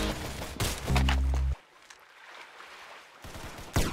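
Gunfire rings out in short bursts.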